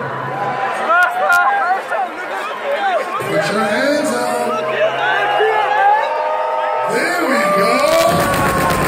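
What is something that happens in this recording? A man shouts into a microphone over loudspeakers in a large echoing hall.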